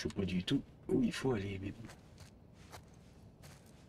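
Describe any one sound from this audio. Footsteps shuffle softly on wet stone.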